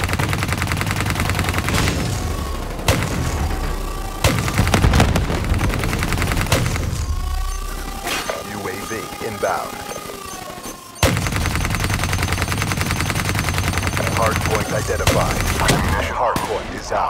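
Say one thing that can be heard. A heavy machine gun fires in rapid, booming bursts.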